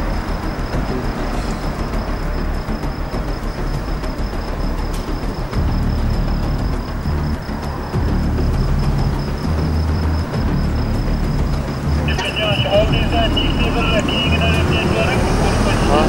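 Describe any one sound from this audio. Cars drive past on a road nearby.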